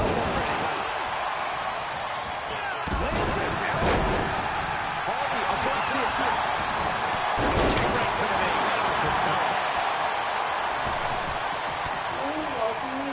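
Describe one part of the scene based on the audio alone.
A large crowd cheers and roars loudly throughout.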